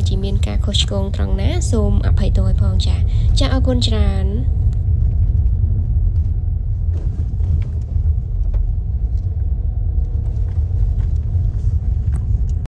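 Tyres crunch over a bumpy dirt road.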